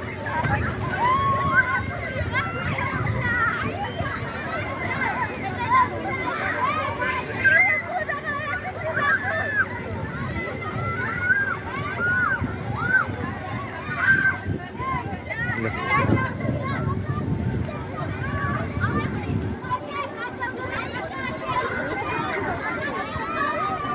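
Many children shout and chatter excitedly outdoors.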